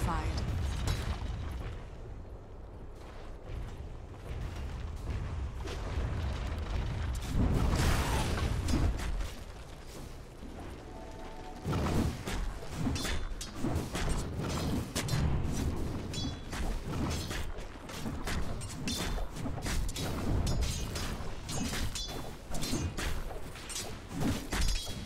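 Game battle effects clash, zap and burst in quick bursts.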